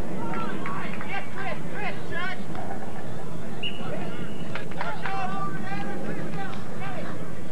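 Young men shout to one another across an open field.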